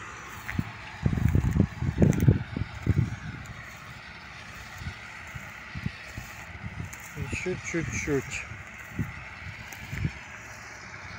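Wind gusts and rumbles across an open field.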